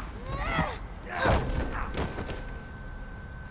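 Heavy blows thud during a scuffle.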